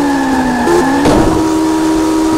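A car crashes into another car with a sharp thud.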